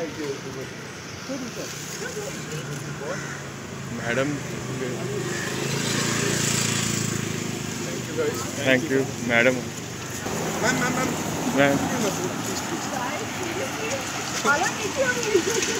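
Young men talk with each other nearby, outdoors.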